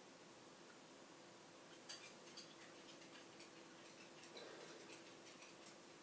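A small dog's claws tick lightly across a hard wooden floor.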